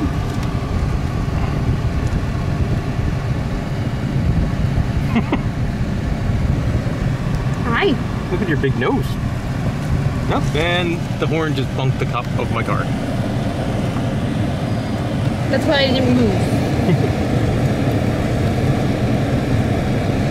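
A car engine rumbles low throughout.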